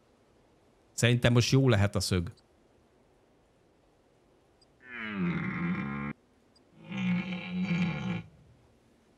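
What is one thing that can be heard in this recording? A deer mating call bellows loudly several times.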